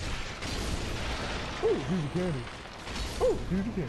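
A sword swings and strikes with a heavy clash.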